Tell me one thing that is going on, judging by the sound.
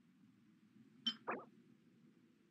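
A game menu gives a short chime as an item's details open.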